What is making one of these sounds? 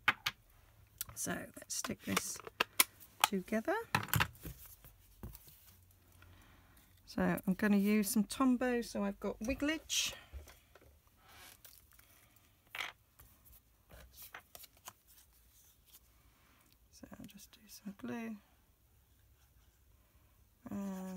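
Stiff card taps and rustles as hands move it about on a table.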